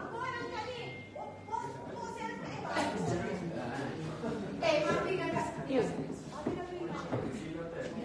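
Several young people talk and laugh close by, indoors.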